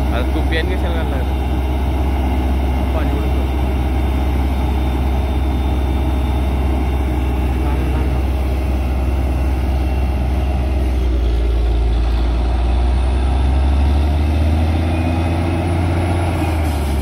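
A drilling rig's diesel engine roars loudly and steadily close by.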